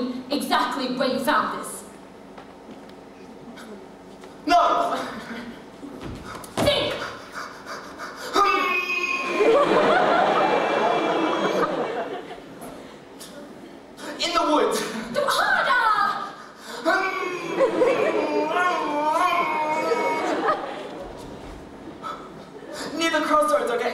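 A young man sings with animation on a stage.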